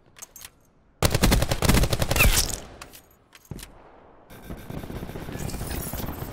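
A rifle fires rapid bursts of gunfire.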